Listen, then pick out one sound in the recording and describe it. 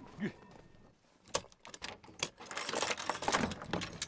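A chain rattles against a wooden door.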